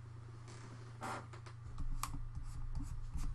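Keyboard keys and a mouse click sharply a few times.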